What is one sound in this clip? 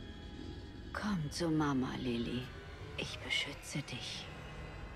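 A woman speaks softly and eerily.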